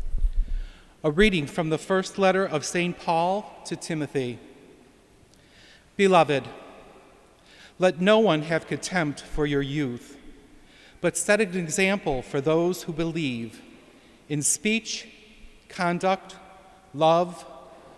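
A man speaks calmly through a microphone in a large echoing hall.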